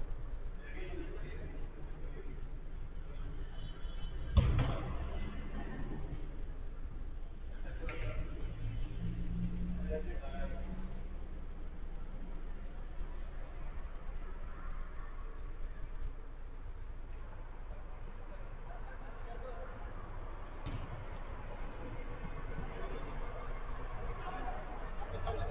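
Men call out to each other in the distance across an echoing hall.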